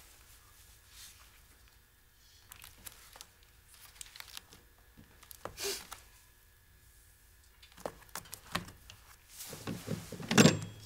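A rotary telephone dial whirs and clicks as a number is dialled.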